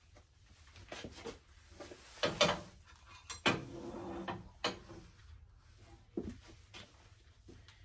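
Metal clanks and knocks.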